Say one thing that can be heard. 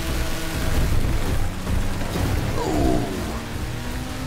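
Metal crashes as cars collide.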